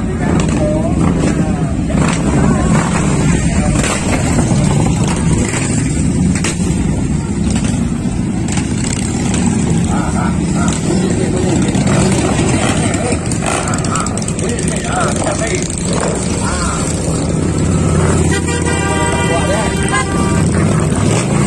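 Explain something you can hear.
Motorcycles ride slowly past.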